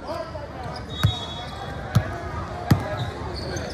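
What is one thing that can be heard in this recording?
A basketball bounces hard on a wooden floor.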